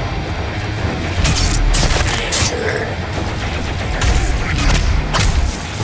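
A monster growls and roars up close.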